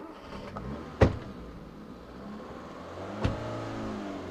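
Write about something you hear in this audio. A car door slams shut.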